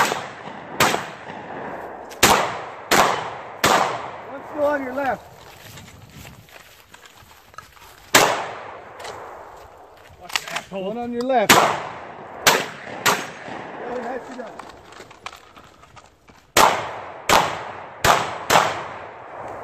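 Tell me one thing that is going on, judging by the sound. Gunshots crack loudly outdoors, echoing off the trees.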